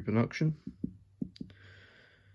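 A fingertip taps on a metal helmet.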